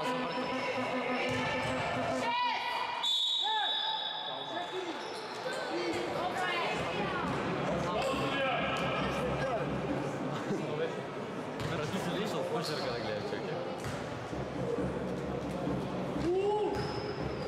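Young women shout to each other across an echoing hall.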